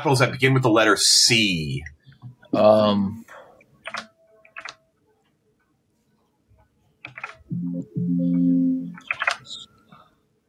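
Men talk and banter over an online call, one speaking with animation.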